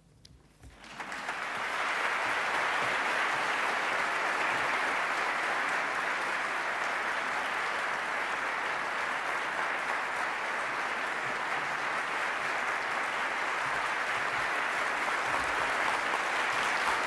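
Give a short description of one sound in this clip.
A large audience applauds steadily in an echoing hall.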